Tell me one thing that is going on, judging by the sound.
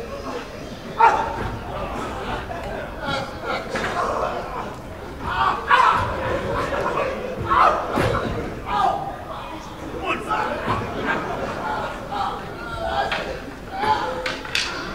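A man speaks with feeling through a microphone in a large echoing hall.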